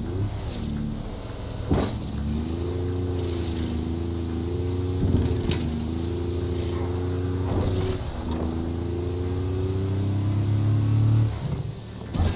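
A snowmobile engine drones steadily, rising and falling in pitch.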